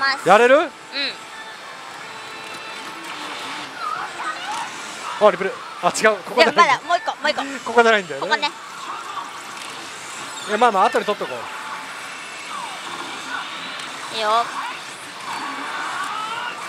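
A slot machine plays loud electronic music and sound effects.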